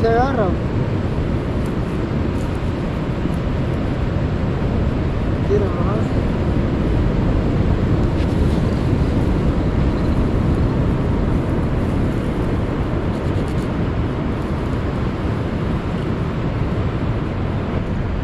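A plastic sack rustles and crinkles as it is handled.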